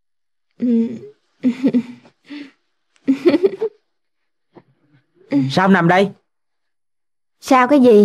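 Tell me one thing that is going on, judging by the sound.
A young woman speaks close by in short, relaxed phrases.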